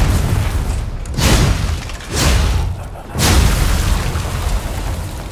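Heavy sword blows clash against metal armour.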